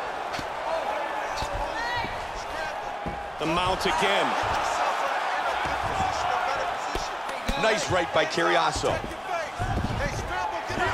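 A crowd roars and cheers steadily in a large arena.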